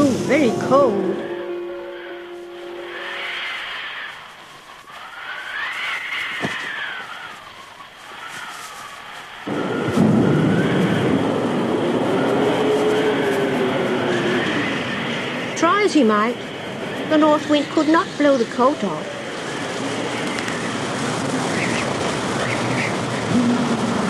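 Wind howls and whistles in strong gusts.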